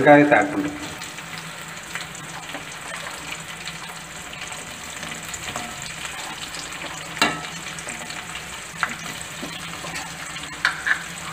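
Onion pieces drop into a metal pan with light taps.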